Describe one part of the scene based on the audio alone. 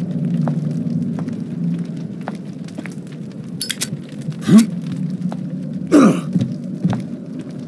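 Footsteps thud on cobblestones.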